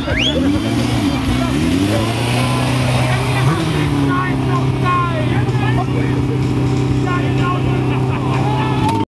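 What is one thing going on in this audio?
A motorcycle engine revs up and down loudly, then idles with a steady rumble.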